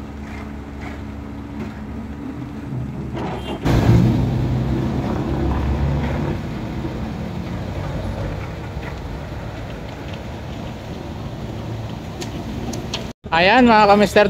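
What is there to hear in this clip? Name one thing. A heavy digger engine rumbles steadily nearby.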